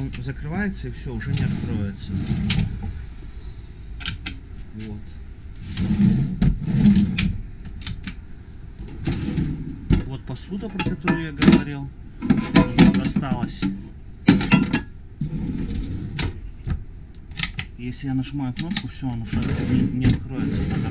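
Drawers slide open and shut with soft knocks.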